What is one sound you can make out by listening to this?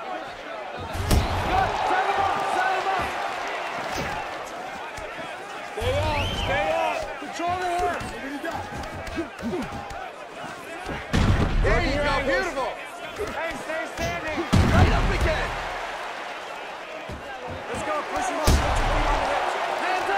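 Punches land with heavy thuds.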